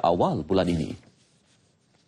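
A man speaks clearly and briefly into a microphone.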